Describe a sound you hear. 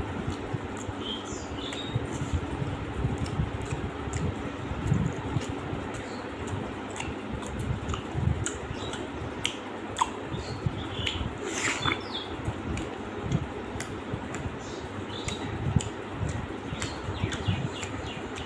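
Fingers squish and pick at soft food.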